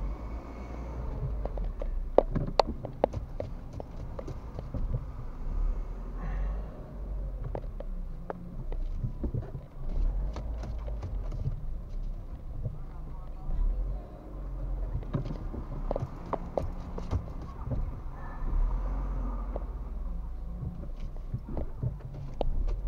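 A car engine hums low, heard from inside the cabin while creeping in slow traffic.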